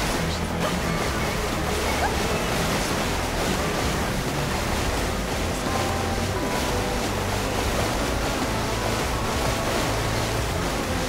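Water splashes and rushes against a jet ski.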